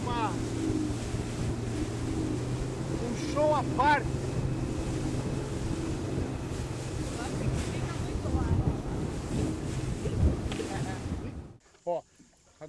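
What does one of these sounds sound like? A boat engine roars steadily as the boat speeds over water.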